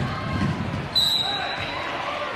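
A referee blows a whistle.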